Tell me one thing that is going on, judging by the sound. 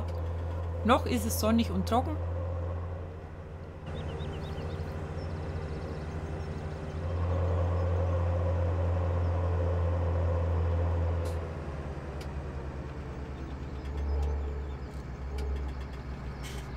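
A tractor engine rumbles steadily, rising and falling as it drives.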